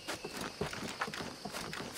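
Wooden rungs creak and knock as someone climbs a ladder.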